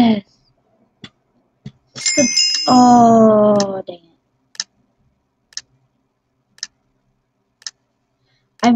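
A game gives short ticks once a second during a countdown.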